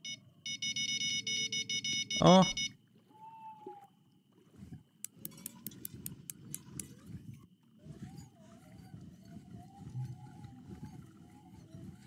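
Water laps gently against a boat.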